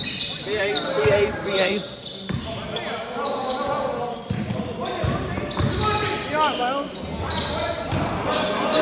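Young men shout to each other across an echoing gym.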